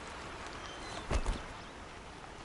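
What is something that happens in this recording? A spear swings and strikes with a heavy thud.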